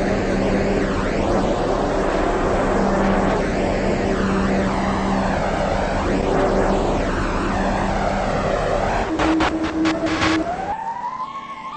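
A subway train rumbles as it rolls through a tunnel.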